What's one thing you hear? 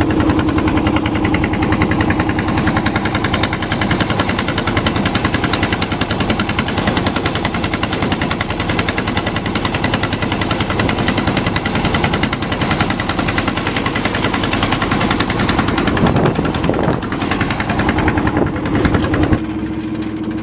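A boat's outboard engine drones loudly with a fast, steady chugging.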